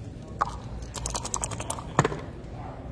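Dice rattle inside a cup.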